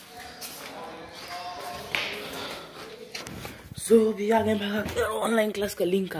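Footsteps patter on a hard floor close by.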